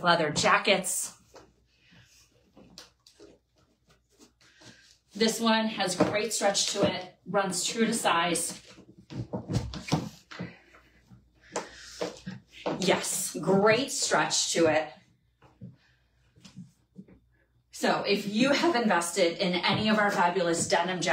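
A woman speaks close up, with animation.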